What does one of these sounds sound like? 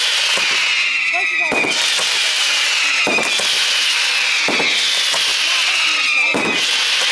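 Fireworks whistle with falling pitch.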